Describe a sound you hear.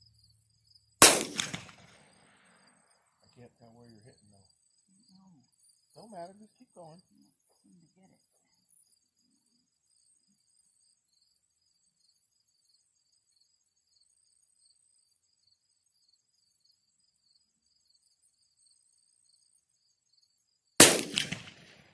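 A pistol fires a loud single shot that echoes briefly outdoors.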